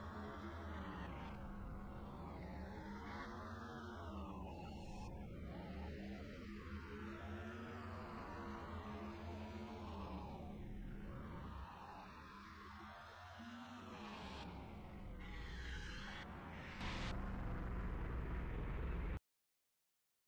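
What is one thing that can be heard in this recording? A car engine roars and revs as a car speeds along.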